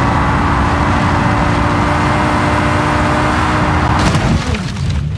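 Tyres rush over pavement at high speed.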